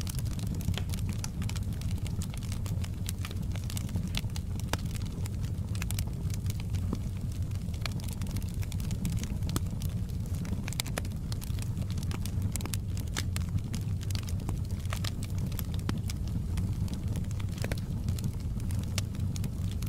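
A log fire roars steadily with a low rumble.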